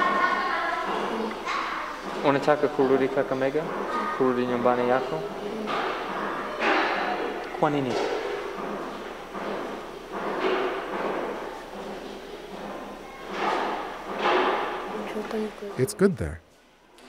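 A young boy speaks softly and hesitantly, close by.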